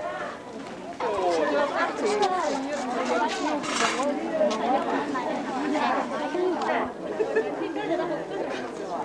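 A woman talks loudly and animatedly nearby.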